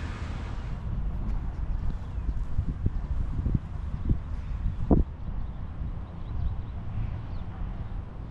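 Wind blows outdoors, buffeting the microphone with a low rumble.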